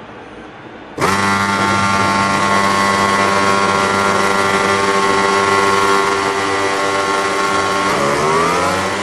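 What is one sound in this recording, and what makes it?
Many motorcycle engines idle with a steady, loud drone.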